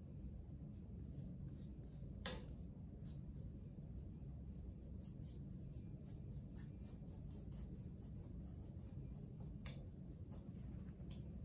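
A paintbrush taps and brushes softly against a canvas.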